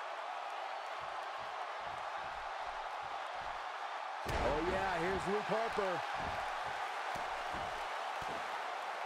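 Heavy thuds land on a wrestling ring mat.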